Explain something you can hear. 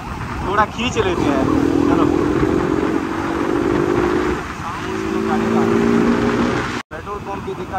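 A motorcycle engine hums and revs up close.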